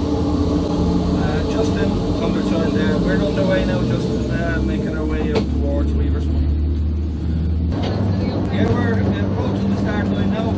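A man speaks into a handheld radio, heard closely.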